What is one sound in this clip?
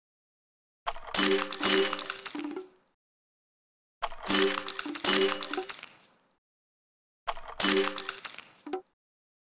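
Game pieces burst and clatter with bright chiming tones, in three short bursts.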